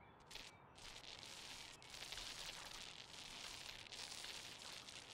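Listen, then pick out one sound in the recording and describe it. A paint sprayer hisses in short, steady bursts.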